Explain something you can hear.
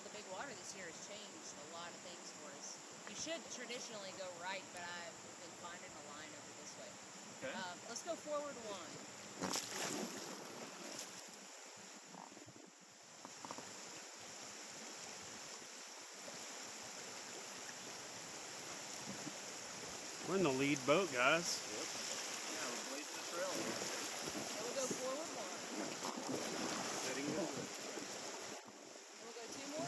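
Paddles splash in the water.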